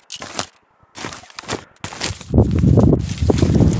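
A coat rustles close by.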